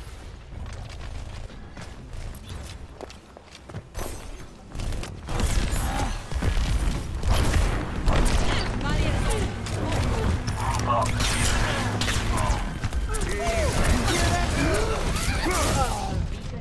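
Rapid sound-blaster shots pulse in bursts.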